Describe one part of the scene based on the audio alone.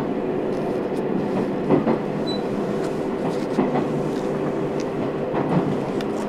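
Leaves rustle as a hand lifts them.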